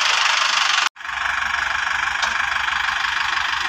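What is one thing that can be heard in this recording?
A tractor engine idles nearby.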